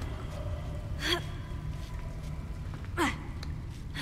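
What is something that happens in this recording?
A character grunts while climbing a stone ledge.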